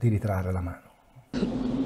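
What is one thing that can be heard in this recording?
A middle-aged man speaks calmly into a microphone, as if on an online call.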